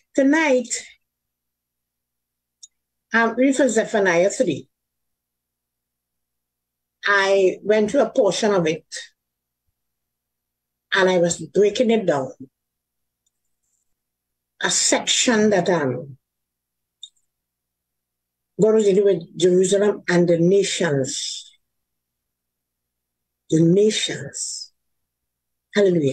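An elderly woman speaks calmly through a microphone on an online call, in short phrases with pauses.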